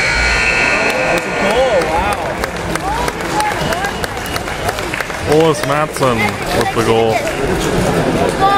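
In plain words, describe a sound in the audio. Young players shout and call out across the ice.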